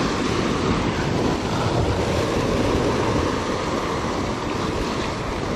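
Surf breaks and foams against rocks below.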